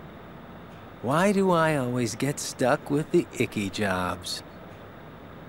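A man speaks in a drawn-out, mocking tone.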